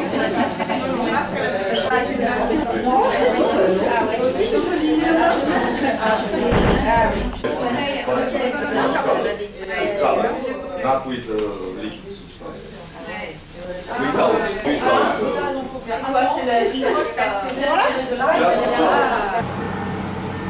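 Several women talk nearby.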